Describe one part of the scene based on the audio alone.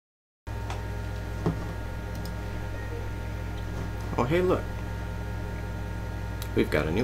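A computer monitor hums steadily.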